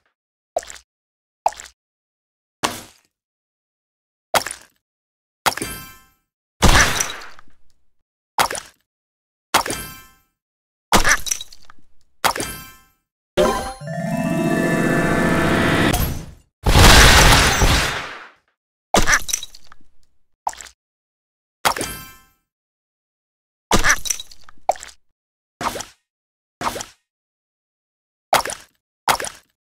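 Game blocks pop with short chiming bursts again and again.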